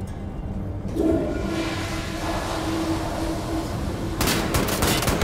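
A toilet flushes with a rushing gurgle of water.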